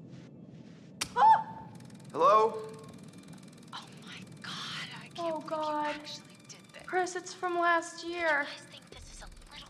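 A young woman speaks with alarm.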